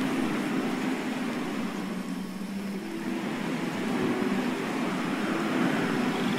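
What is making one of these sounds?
Wind rushes softly past a gliding figure.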